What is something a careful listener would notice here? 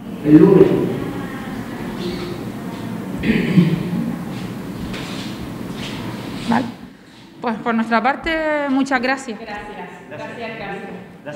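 A young woman speaks calmly into a microphone in an echoing room.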